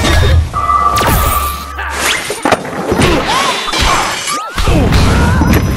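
Bright game sound effects chime and whoosh in quick succession.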